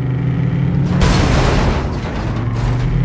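A car crashes and flips with a loud bang.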